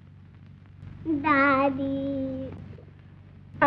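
A young child calls out in a high voice.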